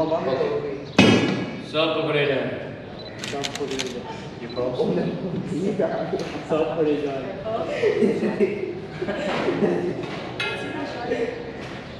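A man talks with animation nearby.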